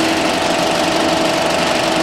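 A film projector whirs and clatters steadily.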